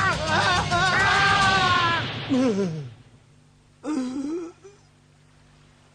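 A man groans in pain.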